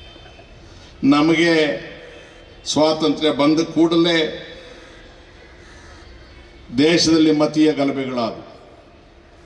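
An elderly man speaks forcefully into a microphone over loudspeakers, in bursts with pauses.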